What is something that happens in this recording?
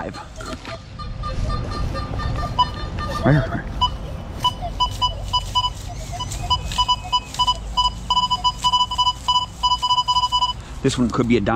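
A metal detector beeps in short repeated pulses.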